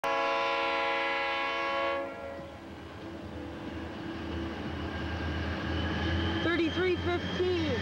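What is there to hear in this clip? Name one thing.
A freight train rumbles by in the distance.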